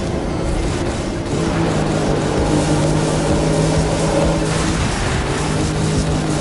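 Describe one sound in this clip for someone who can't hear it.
Tyres hum and whoosh on the road.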